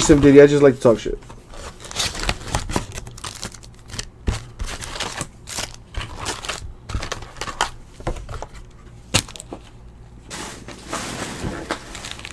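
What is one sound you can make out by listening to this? Plastic-wrapped packs of cards rustle and crinkle as they are handled.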